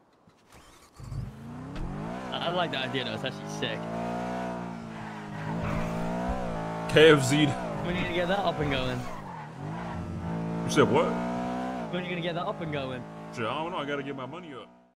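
A car engine revs up and down as the car accelerates.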